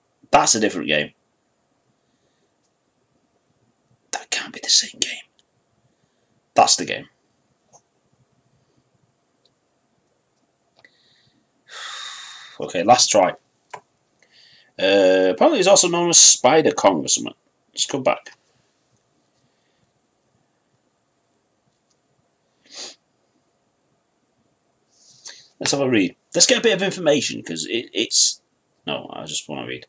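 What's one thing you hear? A man talks in short bursts, close to a microphone.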